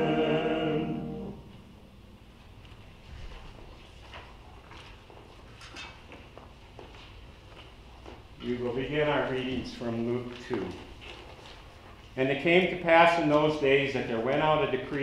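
A choir of mixed voices sings in a hall with an echo.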